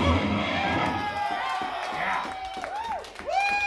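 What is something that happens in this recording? A rock band plays loudly with electric guitars and drums.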